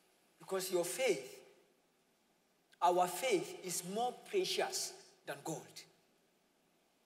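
A man speaks clearly into a microphone with animation, in a large room that echoes.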